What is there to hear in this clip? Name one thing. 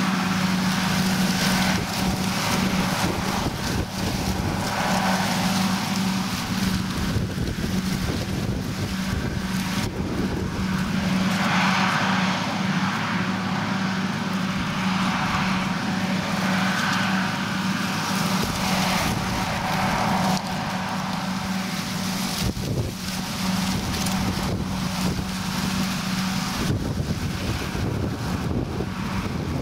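A harvester engine roars steadily while chopping maize.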